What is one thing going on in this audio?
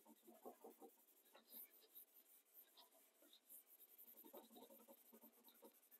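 Charcoal scratches and rubs softly on paper.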